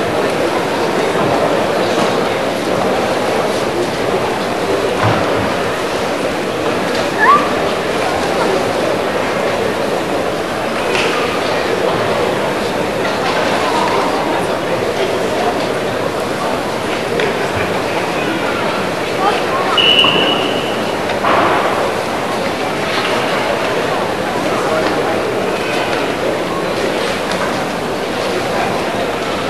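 A young man stamps and slides his bare feet on a hard floor.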